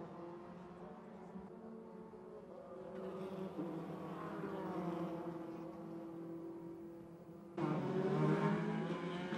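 Racing car engines whine at high revs as the cars speed past.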